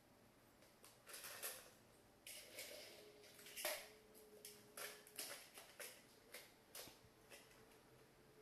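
Plastic toy train pieces clatter and click as a child handles them.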